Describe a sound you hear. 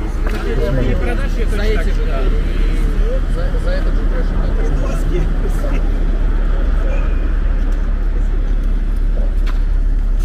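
A young man speaks close by.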